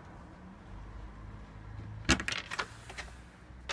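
A door opens with a clatter.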